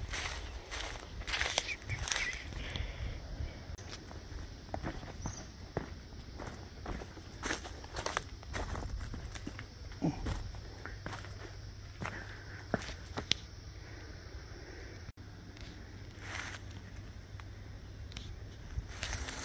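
Footsteps crunch on dry leaves and gravel along an outdoor path.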